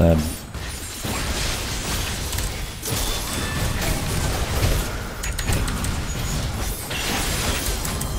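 Game spells and attacks clash and crackle in a fast fight.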